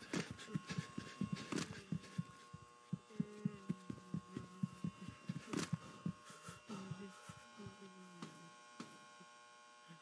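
Footsteps patter softly across a carpeted floor.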